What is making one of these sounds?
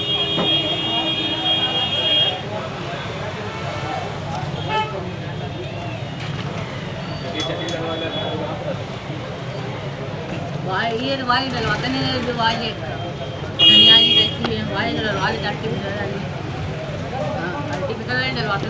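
Several people murmur and chatter in the background.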